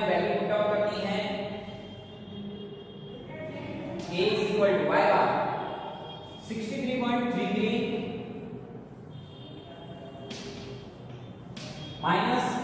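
A young man explains calmly, speaking nearby.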